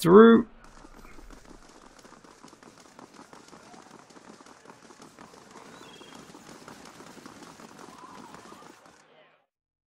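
Several sets of footsteps tap quickly on stone.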